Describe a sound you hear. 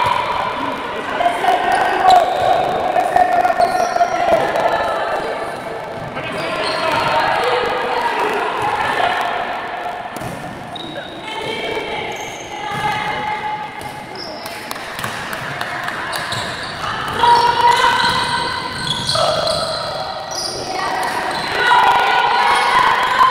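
A crowd of spectators chants and cheers loudly in a large echoing hall.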